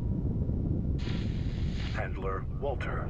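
Thrusters fire with a short hissing blast.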